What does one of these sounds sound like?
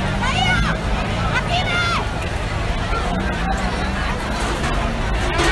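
A large crowd shouts and clamours close by.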